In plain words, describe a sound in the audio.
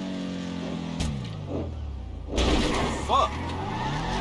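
A car lands hard with a loud thump.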